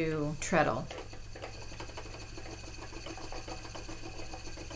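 A spinning wheel whirs softly as it turns.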